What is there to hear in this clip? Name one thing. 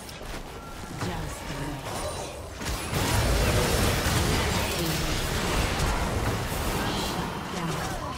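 Spells and weapon blows clash and burst in a loud fight.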